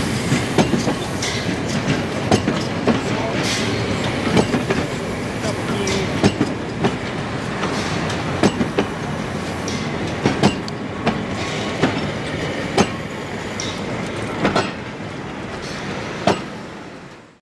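Railway carriages roll past with rhythmic clacking of wheels over rail joints.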